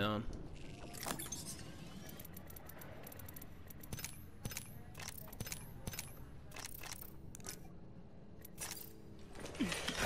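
Menu items click in quick succession.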